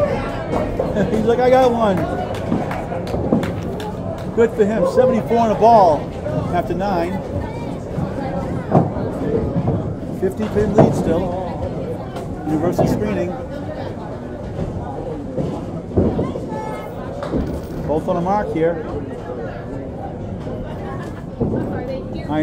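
A bowling ball rumbles down a lane.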